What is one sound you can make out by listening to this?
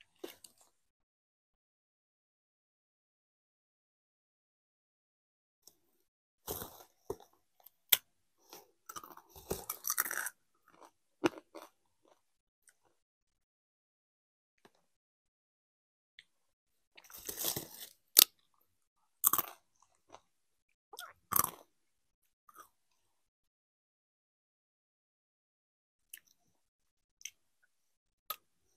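A crisp bag crinkles close by.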